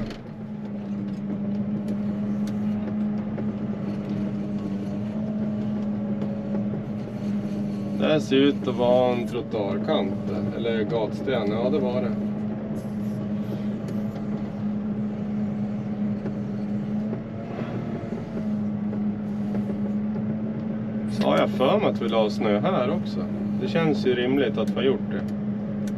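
A heavy diesel engine drones steadily close by.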